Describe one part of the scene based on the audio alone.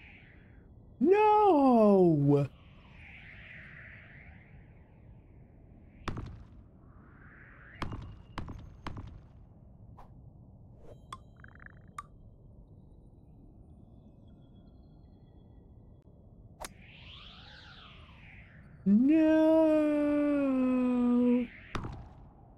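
An electronic tone slides quickly downward in pitch.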